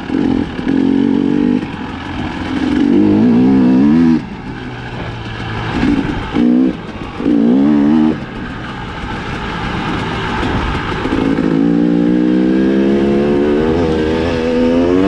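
A motorbike engine revs up and down, rising and falling in pitch.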